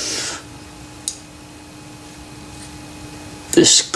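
A metal cover plate clinks as it is lifted off.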